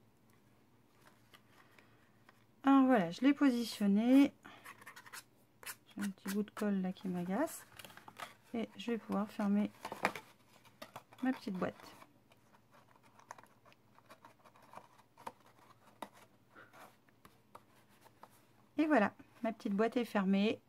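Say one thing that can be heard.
Stiff paper rustles and creases as it is folded and pressed.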